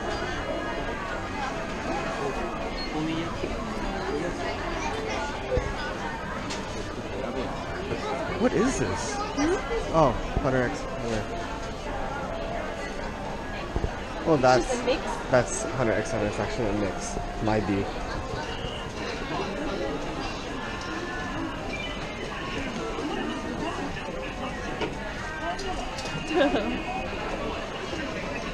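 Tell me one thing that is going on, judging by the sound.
Many voices chatter in a busy indoor crowd.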